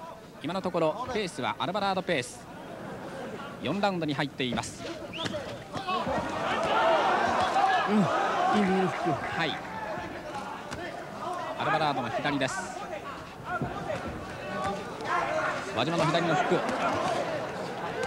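Boxing gloves thud against bodies in quick blows.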